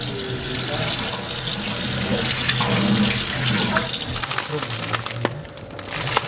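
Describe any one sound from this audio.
Tap water runs and splashes into a metal sink.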